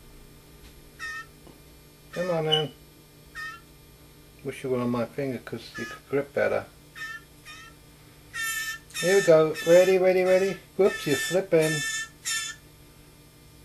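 A small bird chirps in short, high calls.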